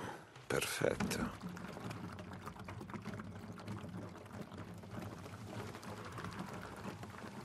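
Fuel pours from a plastic jerry can into a motorcycle tank.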